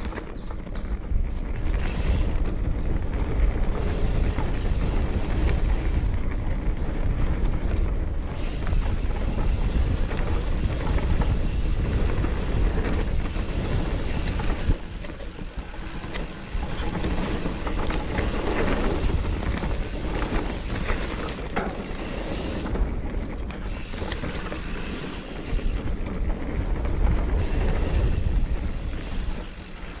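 Wind rushes past a fast-moving rider.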